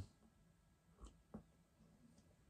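A young man sips and gulps a drink.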